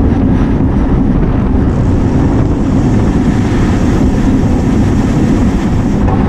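Wind buffets loudly across a microphone outdoors.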